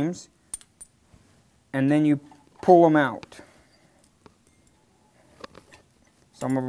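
A metal wrench clicks and scrapes against a brass valve.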